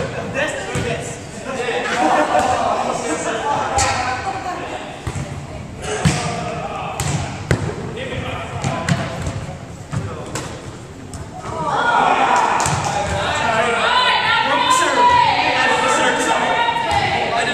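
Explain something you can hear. Young people talk and call out in a large echoing gym.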